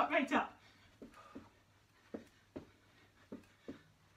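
Feet thump rhythmically on a floor.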